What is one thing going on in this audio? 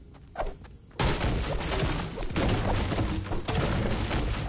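A game pickaxe strikes a tree.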